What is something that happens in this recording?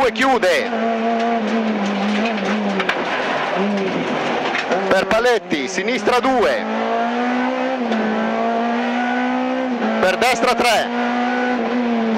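A rally car engine roars at high revs, rising and falling with each gear change.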